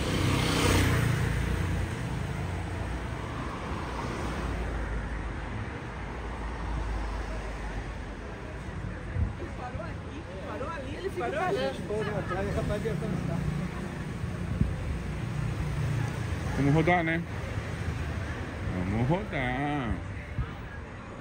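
Traffic hums steadily on a city street outdoors.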